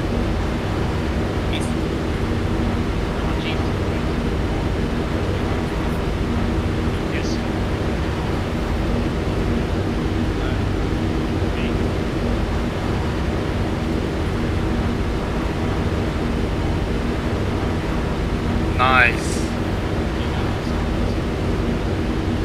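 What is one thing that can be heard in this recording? A helicopter engine drones with a steady, deep rumble.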